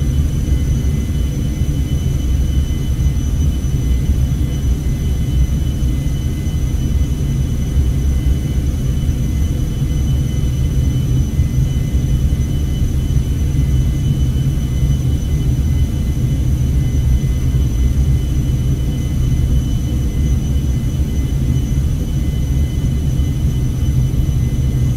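A jet engine drones steadily inside an aircraft cabin.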